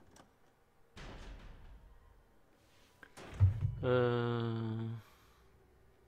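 A heavy metal door creaks slowly open.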